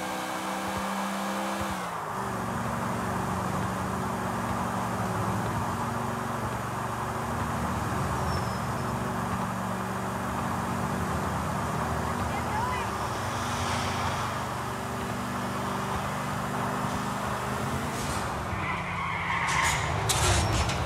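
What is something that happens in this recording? A car engine roars steadily at speed, shifting pitch as it changes gear.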